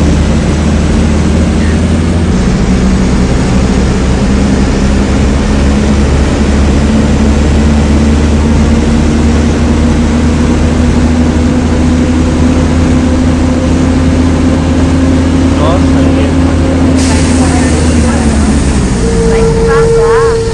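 A bus engine hums steadily and then winds down as the bus slows to a stop.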